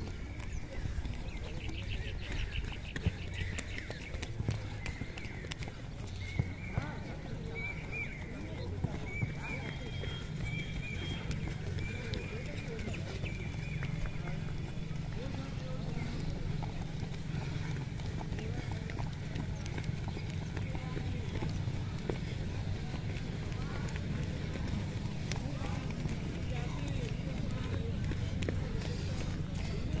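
Footsteps thud softly on grass as runners jog past.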